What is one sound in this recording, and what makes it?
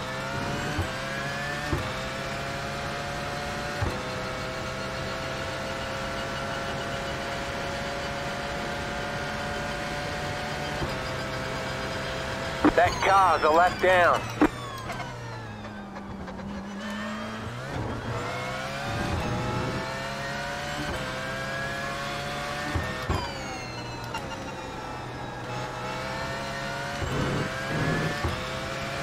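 A racing car engine roars at high revs, climbing in pitch and dropping briefly with each upshift.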